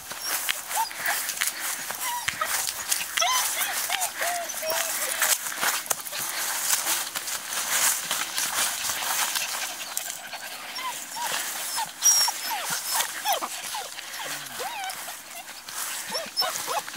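Puppies rustle through long grass.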